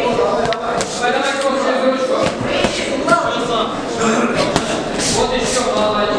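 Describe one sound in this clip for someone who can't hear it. Boxing gloves thud against headgear and bodies in quick punches.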